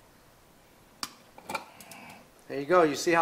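A screwdriver and metal parts click against a wall outlet.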